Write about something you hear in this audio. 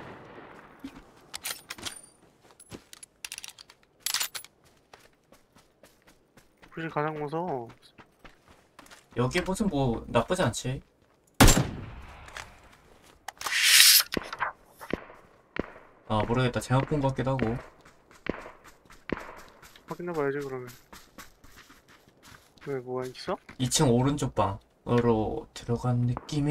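Footsteps patter quickly over grass and dirt.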